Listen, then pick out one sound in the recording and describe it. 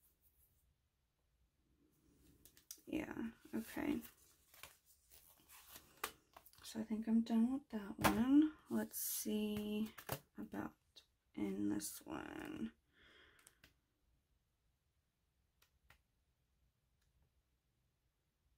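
Paper pages rustle as they are flipped.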